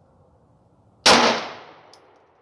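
A pistol fires a loud shot outdoors that echoes briefly.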